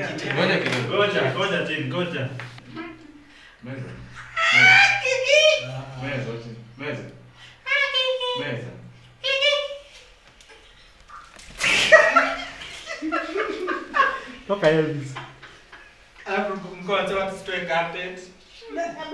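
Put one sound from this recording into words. Young men laugh loudly and cheer together.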